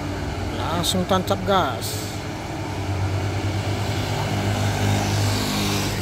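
A motorcycle engine approaches and grows louder.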